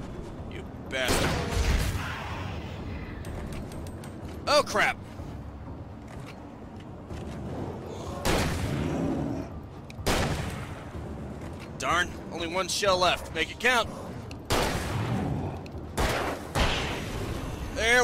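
Gunshots fire in loud bursts with echoes.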